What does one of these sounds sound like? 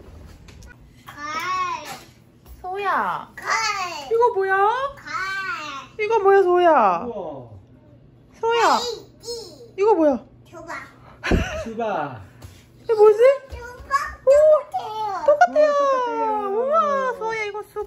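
A woman speaks to a small child in a high, playful voice close by.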